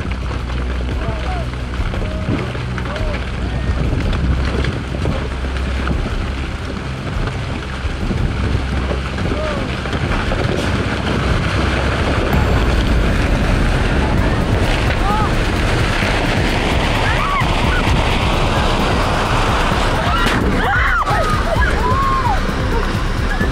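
Rocks and earth rumble and tumble down a slope, growing louder.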